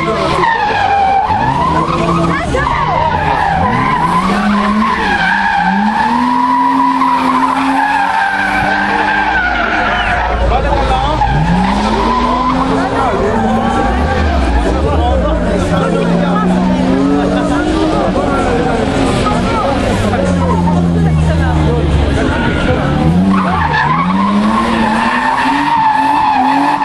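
Tyres screech loudly on the pavement.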